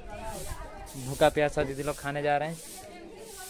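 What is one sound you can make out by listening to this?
A young man talks animatedly, close by.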